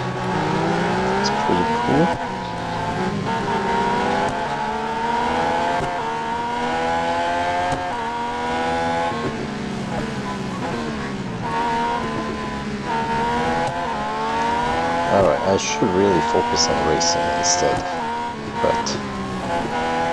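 A racing car engine screams at high revs, rising and dropping in pitch as it shifts gears.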